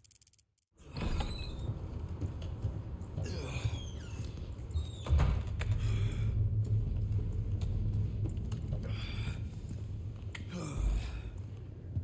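A man breathes heavily and groans in pain.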